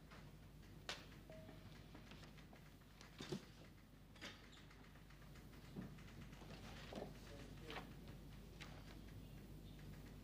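Papers rustle and knock on a desk.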